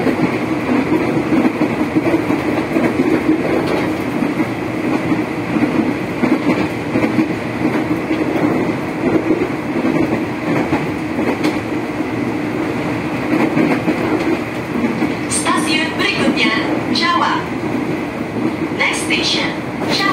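A train rumbles steadily along the rails, heard from inside a carriage.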